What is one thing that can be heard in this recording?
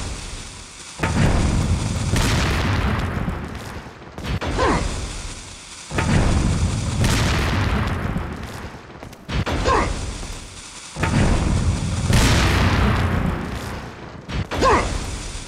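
A glass pane cracks and shatters.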